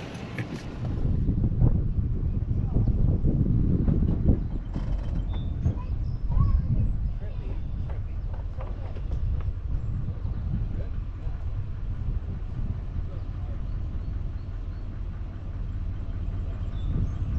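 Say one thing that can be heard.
A boat engine idles on the water.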